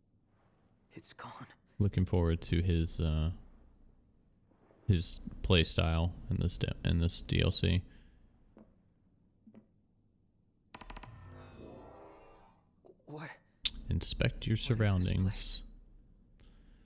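A young man speaks in a low, tense voice, close up.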